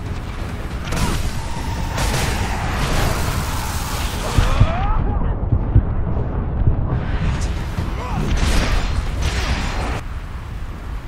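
A blade slashes and clashes in a fierce fight.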